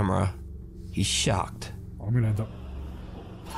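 A young man talks calmly, close up.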